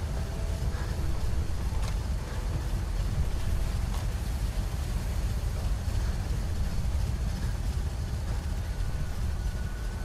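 A deep, steady mechanical hum drones.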